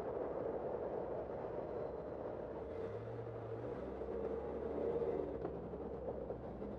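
City traffic rumbles steadily close by.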